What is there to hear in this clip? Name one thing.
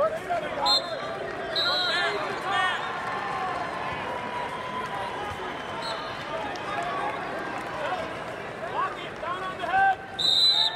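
Shoes squeak on a wrestling mat.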